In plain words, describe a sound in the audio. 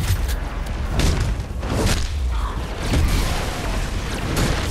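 Punches and blows thud.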